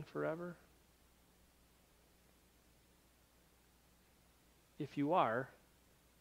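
A man speaks calmly and close by, pausing between phrases.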